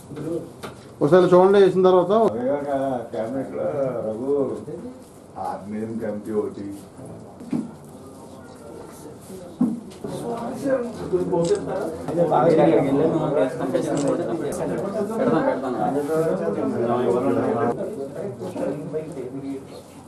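A man chants prayers in a steady, singing voice.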